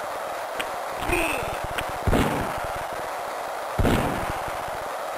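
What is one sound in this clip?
Hockey players crash together with heavy thuds.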